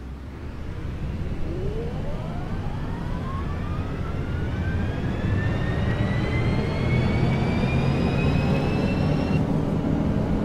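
A bus motor whines, rising steadily in pitch as the bus speeds up.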